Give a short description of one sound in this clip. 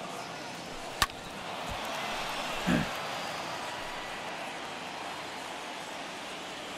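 A stadium crowd cheers steadily.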